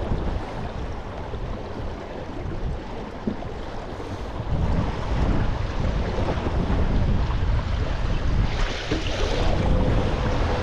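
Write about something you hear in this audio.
Wind blusters across an open microphone outdoors.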